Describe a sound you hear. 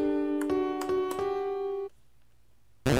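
A piano plays a short melody of single notes.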